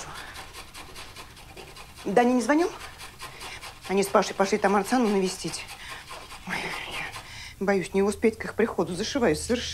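A woman grates vegetables on a metal grater.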